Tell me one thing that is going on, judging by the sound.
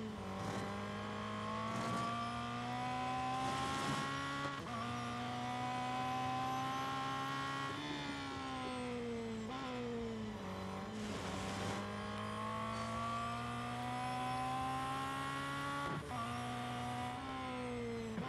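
A racing car engine roars loudly, rising in pitch as it speeds up and dropping with each gear change.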